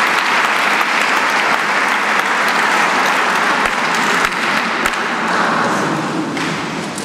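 A crowd applauds in an echoing hall.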